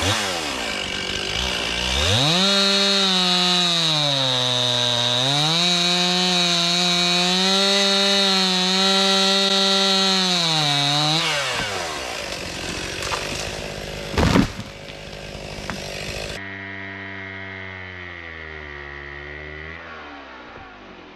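A chainsaw roars and whines as it cuts into a tree trunk.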